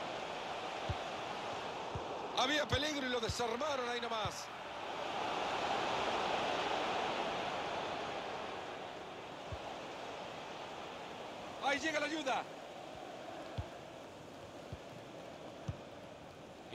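A football is kicked with dull thuds.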